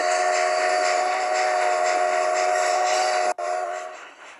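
A steam locomotive whistle blows loudly and steadily, then cuts off.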